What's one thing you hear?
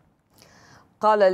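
A woman speaks clearly and calmly into a microphone.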